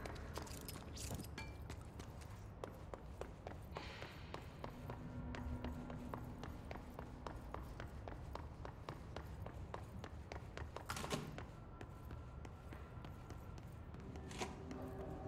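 Footsteps run quickly across a hard floor in an echoing hall.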